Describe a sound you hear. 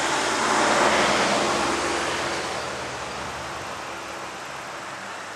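Wind blows steadily outdoors and slowly eases.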